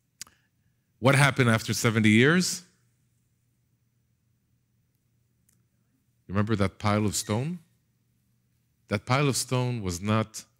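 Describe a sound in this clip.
A middle-aged man speaks with animation through a headset microphone, with pauses.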